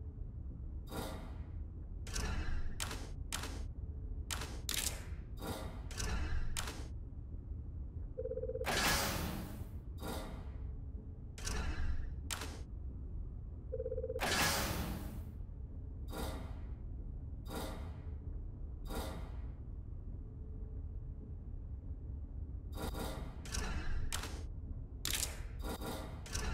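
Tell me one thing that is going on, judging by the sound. Short, sharp menu clicks tick again and again.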